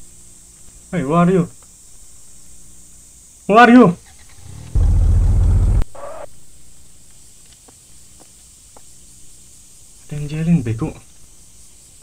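A young man speaks briefly into a microphone with animation.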